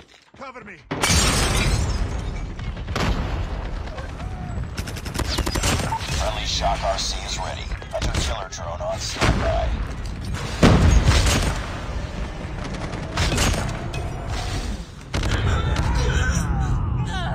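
Gunshots crack in rapid bursts, close by.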